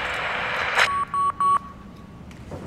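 A computer terminal beeps.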